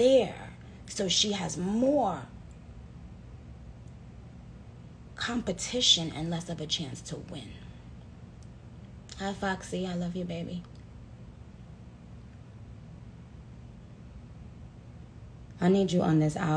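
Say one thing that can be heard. A young woman talks close to the microphone in short, lively bursts with pauses between.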